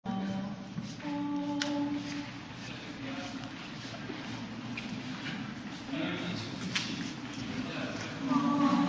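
A small mixed choir of young men and women sings together in an echoing hall.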